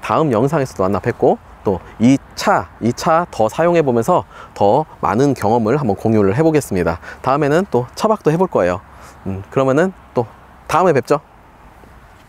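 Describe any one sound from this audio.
A young man talks calmly and clearly into a close microphone.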